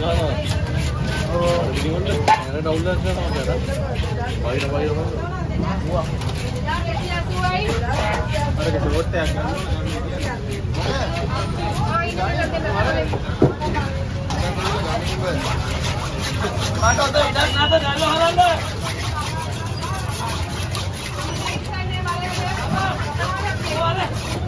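A knife chops and scrapes on a wooden block.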